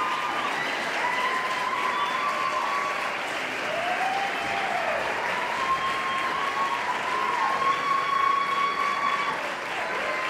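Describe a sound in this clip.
A group of men sing in close harmony through a microphone in a large hall.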